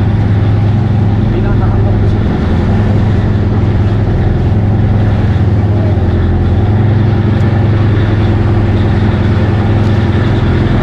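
A boat engine drones steadily and loudly close by.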